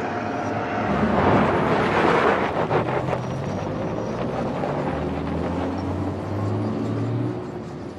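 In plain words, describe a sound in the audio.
A car drives away over gravel.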